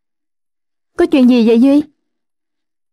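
A young woman speaks briefly.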